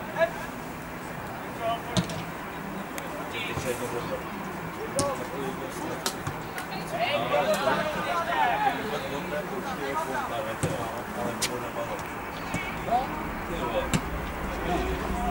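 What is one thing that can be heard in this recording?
Young players shout across an open field.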